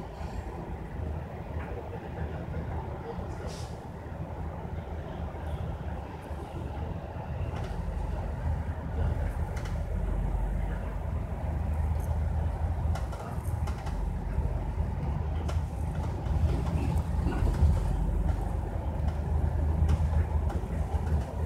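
A bus engine rumbles low and steadily, growing louder as it speeds up.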